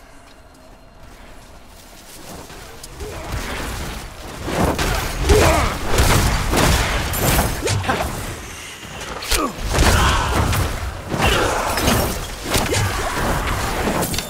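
Fiery spells and blows crash in a game battle.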